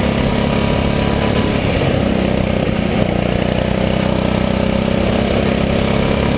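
A go-kart engine buzzes loudly up close, its pitch shifting as it accelerates.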